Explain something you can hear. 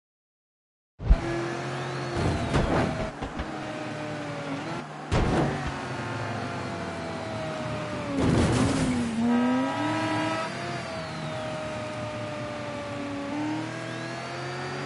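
A car engine hums and revs as the car drives along a road.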